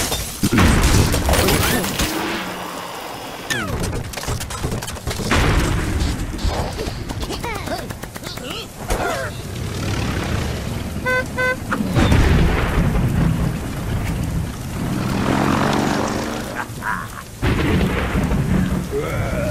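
Lively game music plays throughout.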